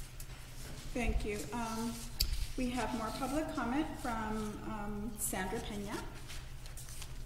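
A woman speaks calmly through a microphone in a large room.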